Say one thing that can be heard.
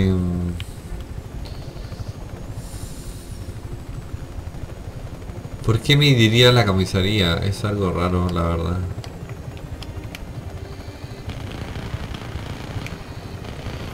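A helicopter's rotor thrums steadily.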